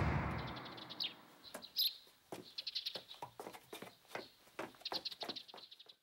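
Footsteps walk briskly over hard ground and move away.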